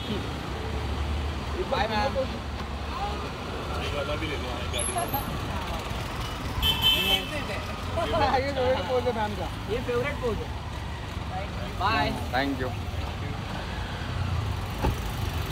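Men call out loudly close by.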